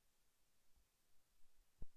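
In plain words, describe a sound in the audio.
Floodwater sloshes around wading legs.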